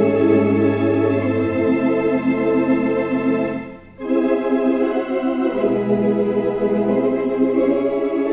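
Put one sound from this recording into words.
An organ plays slow, sustained chords, briefly pausing before going on.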